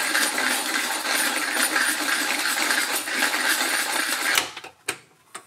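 A hand grinder grinds coffee beans with a steady rasp.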